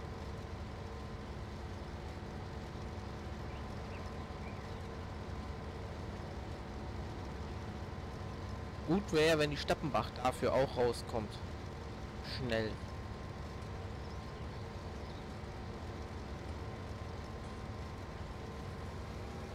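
A combine harvester's engine drones steadily.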